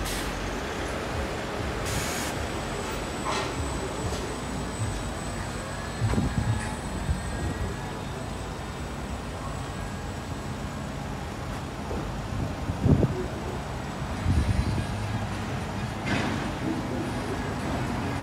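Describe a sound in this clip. Traffic hums steadily along the street outdoors.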